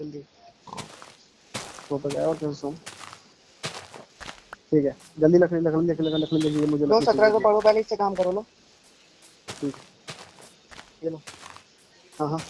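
Game leaf blocks break with soft rustling crunches.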